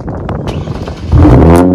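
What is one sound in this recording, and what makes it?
A car engine starts with a loud, deep roar.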